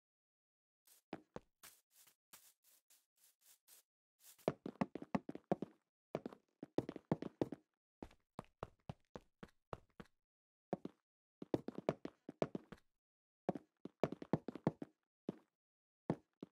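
Stone-like blocks thud into place one after another in a video game.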